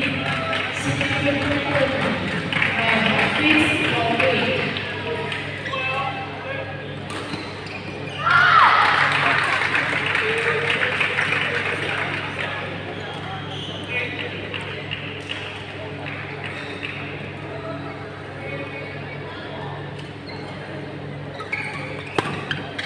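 A crowd of voices chatters in a large echoing hall.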